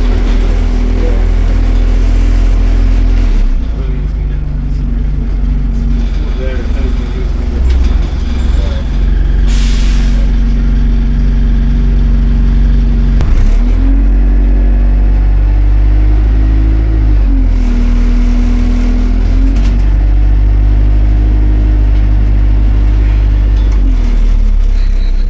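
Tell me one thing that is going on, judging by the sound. A bus engine hums and whines steadily, rising and falling in pitch as the bus moves.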